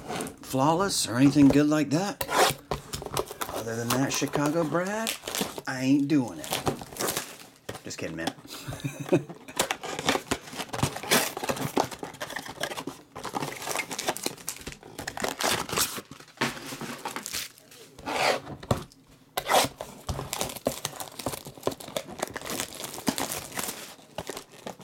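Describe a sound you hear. Cardboard boxes tap and scrape as they are handled.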